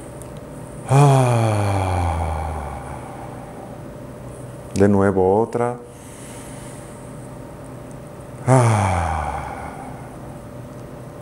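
A man chants a long, deep, falling tone close to a microphone.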